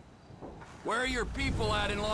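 A car engine starts and idles with a low rumble.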